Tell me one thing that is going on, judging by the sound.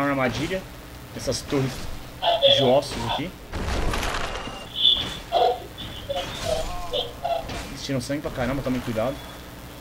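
A sword swings and strikes with a sharp hit.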